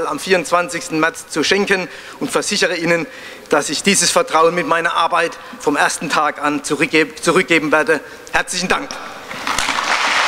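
A middle-aged man speaks calmly through a microphone in an echoing hall.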